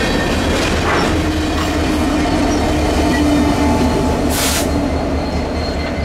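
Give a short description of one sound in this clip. A locomotive engine drones as it passes.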